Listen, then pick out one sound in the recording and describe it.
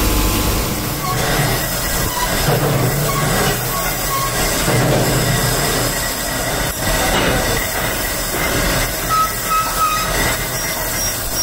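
A belt grinder whirs as metal is ground against it.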